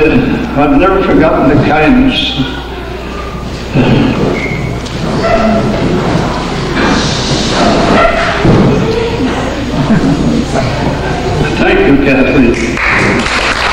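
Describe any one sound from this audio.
An elderly man speaks slowly and deliberately through a microphone in an echoing hall.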